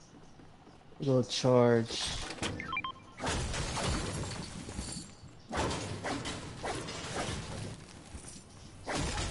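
Bright chimes ring as items are picked up.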